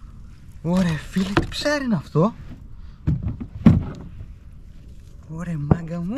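Fishing gear clicks and rattles as it is handled.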